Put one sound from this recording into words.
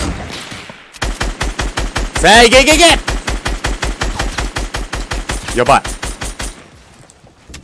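A rifle fires in a rapid burst of shots.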